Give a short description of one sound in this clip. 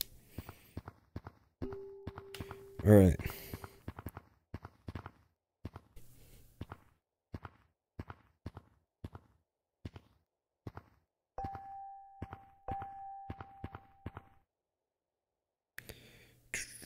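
Short soft thuds of hands slapping onto rock repeat at a quick, uneven pace.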